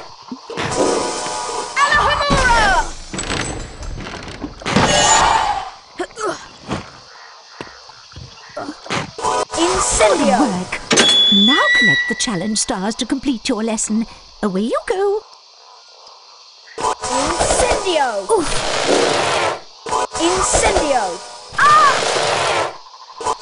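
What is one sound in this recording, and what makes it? A magic spell whooshes and shimmers in short bursts.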